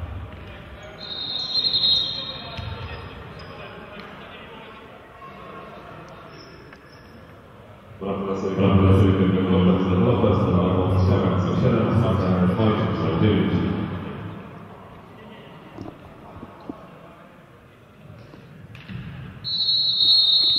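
Sports shoes squeak on a hard indoor court.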